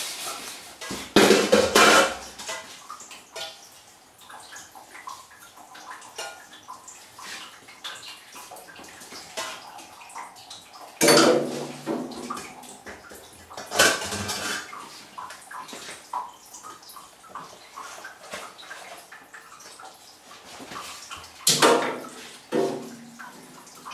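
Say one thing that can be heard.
Metal strainers clatter and clank against each other.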